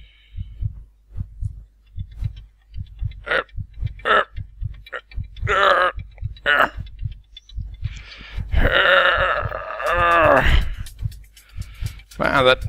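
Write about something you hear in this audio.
A heart thumps in a quick, steady beat.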